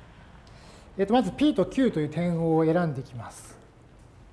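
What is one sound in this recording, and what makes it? A middle-aged man speaks in a lecturing tone.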